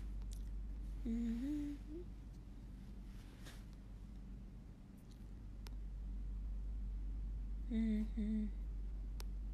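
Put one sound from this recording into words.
A woman speaks briefly and quietly, close to a phone's microphone.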